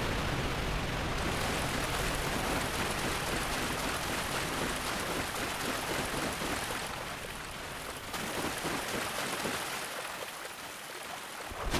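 An armoured figure wades through water with sloshing steps.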